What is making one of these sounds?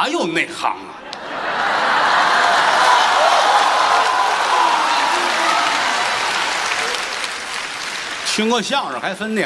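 A large audience laughs and applauds loudly.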